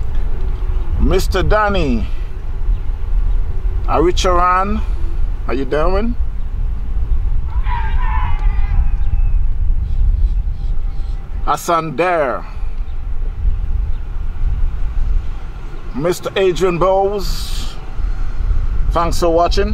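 Men call out to one another across an open field.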